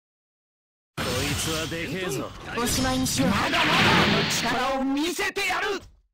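Magic spells whoosh and crackle in a fantasy battle.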